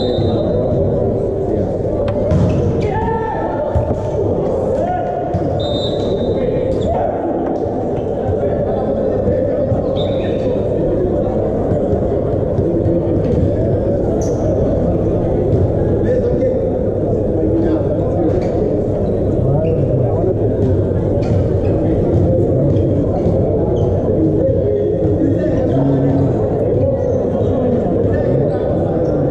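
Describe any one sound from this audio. Young men shout to each other in an echoing indoor hall.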